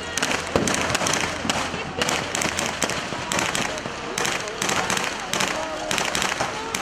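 A large crowd shouts and cries out in alarm outdoors.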